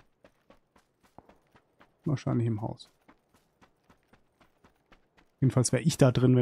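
Footsteps crunch quickly over dry grass.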